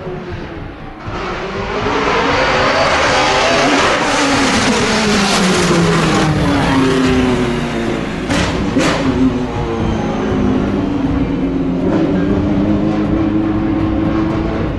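A second racing car engine roars in, speeds past close by and fades away.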